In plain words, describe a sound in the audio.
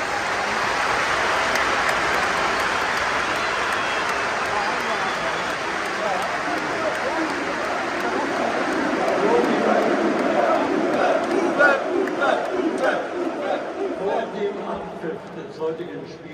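A large stadium crowd roars and murmurs in a vast open space.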